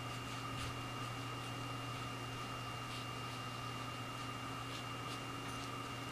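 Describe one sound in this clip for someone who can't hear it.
A brush dabs and scratches softly on paper.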